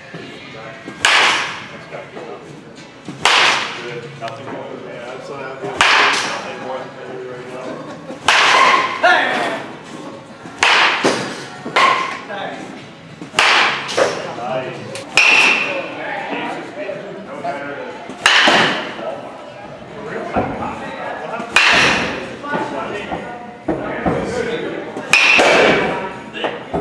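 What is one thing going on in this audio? A bat cracks sharply against a ball again and again, with a short ring after each hit.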